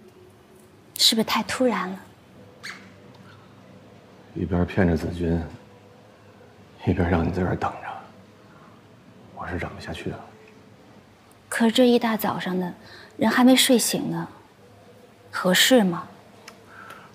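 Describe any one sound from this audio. A young woman speaks quietly and with concern, close by.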